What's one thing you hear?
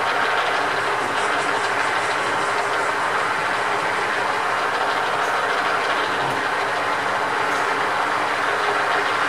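A metal lathe spins steadily with a constant whirring hum.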